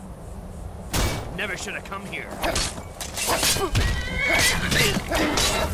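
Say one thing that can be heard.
Metal blades clash and strike armour.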